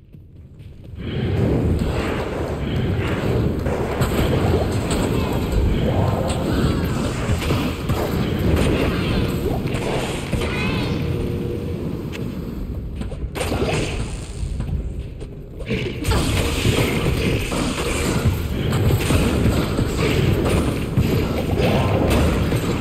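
Spells crackle and burst as game creatures fight.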